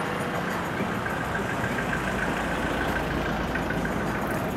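A van drives past close by.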